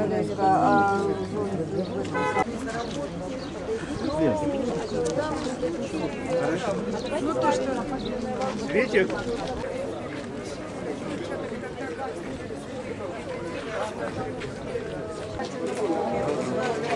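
A crowd of adults talks and murmurs outdoors.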